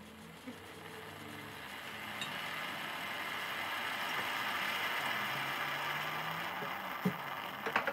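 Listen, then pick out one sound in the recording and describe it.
Steam hisses from a coffee machine.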